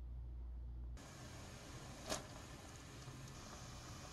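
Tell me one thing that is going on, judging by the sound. Water boils and bubbles steadily in a pan.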